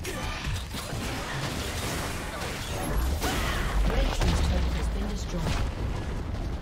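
Magical spell effects crackle and burst in a fast game battle.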